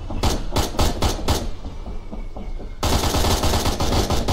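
A helicopter's rotor thumps steadily nearby.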